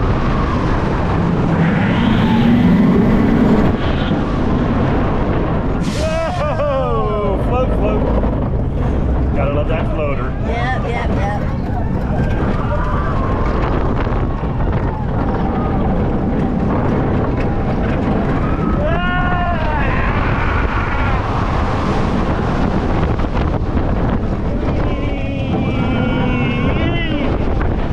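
A roller coaster rattles and rumbles along its track.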